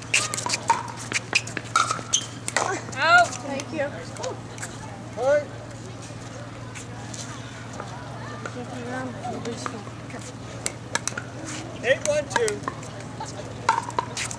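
Paddles pop against a plastic ball in a quick rally.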